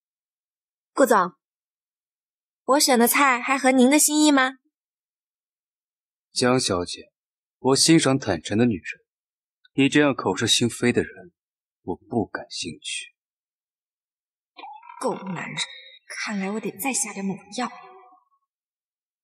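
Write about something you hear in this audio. A young woman speaks calmly and politely, close by.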